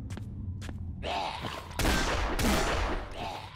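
A zombie snarls and groans close by.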